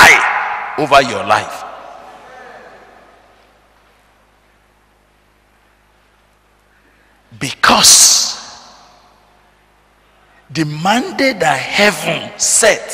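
A middle-aged man preaches forcefully into a microphone in an echoing hall, with long pauses.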